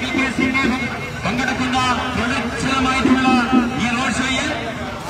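A group of men chant loudly as they walk outdoors.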